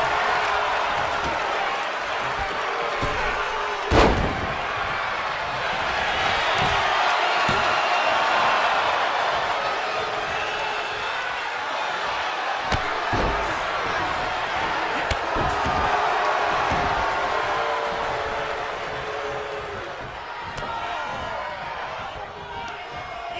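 A crowd cheers loudly throughout.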